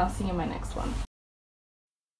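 A young woman talks cheerfully and close by.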